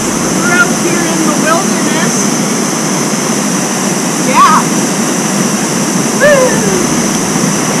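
A young woman whoops and calls out outdoors.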